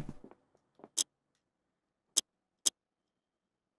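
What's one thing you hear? Short sharp electronic blips sound a few times.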